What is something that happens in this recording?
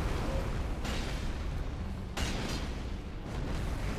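Heavy thuds and whooshes come from a large creature attacking.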